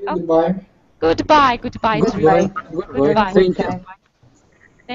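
A young man talks through an online call.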